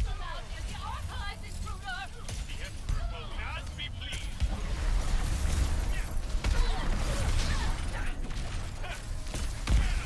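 Laser shots crackle in rapid bursts.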